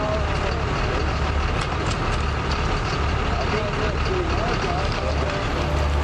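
Rakes scrape across loose asphalt.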